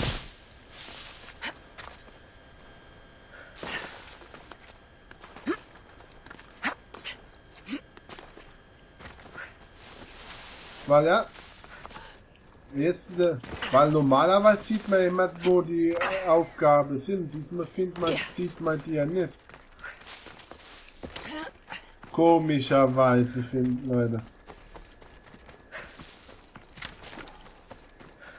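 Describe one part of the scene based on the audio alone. Footsteps scuff and crunch on rocky ground.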